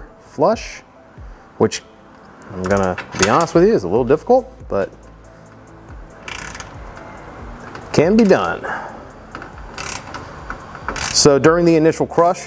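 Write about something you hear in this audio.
Plastic car trim clicks and rattles as it is pried loose.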